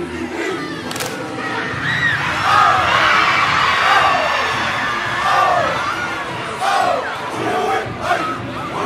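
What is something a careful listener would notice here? A large crowd cheers and whoops loudly in an echoing hall.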